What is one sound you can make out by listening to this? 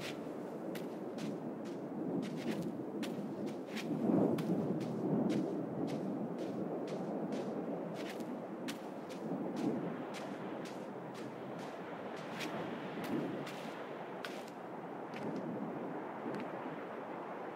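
Footsteps crunch in snow at a steady pace.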